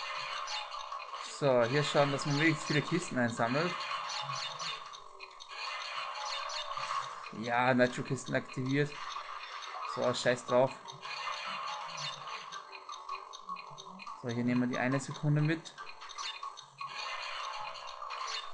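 A small racing game kart engine drones steadily.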